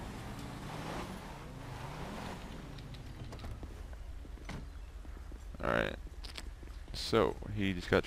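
A car engine hums as a car drives off.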